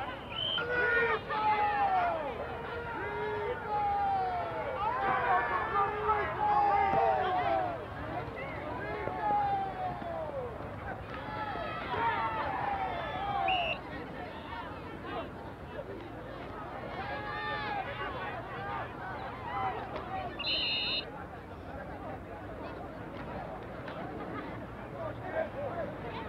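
A crowd of men and women shouts and cheers outdoors.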